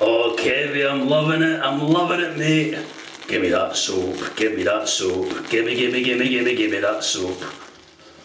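A shaving brush swirls lather in a tub.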